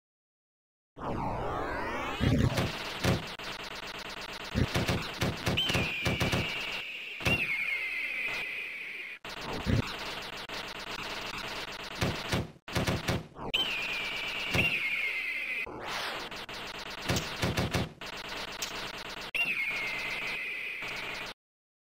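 Upbeat arcade game music plays.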